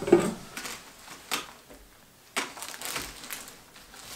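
Small objects clatter and knock on a wooden table close by.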